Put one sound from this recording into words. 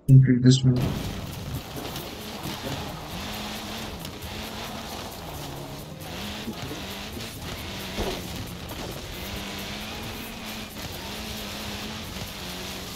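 Tyres crunch through brush and gravel.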